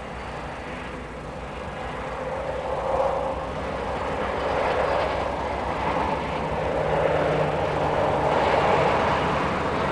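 Train wheels rattle on the rails, growing louder.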